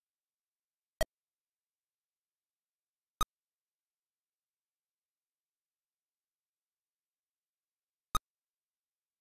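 Short electronic clicks come from an 8-bit home computer game.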